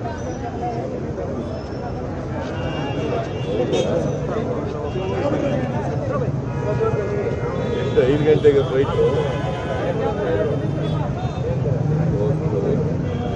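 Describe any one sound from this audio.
An elderly man talks calmly on a phone nearby.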